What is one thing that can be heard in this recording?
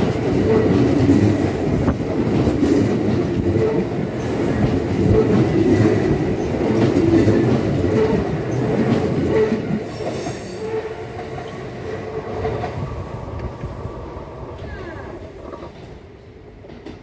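A train rumbles past at close range, then fades into the distance.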